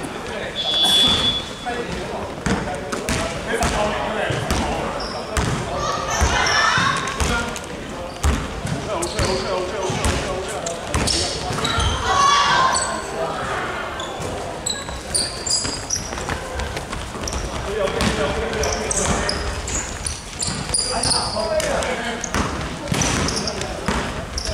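Men shout and call out to each other across the hall.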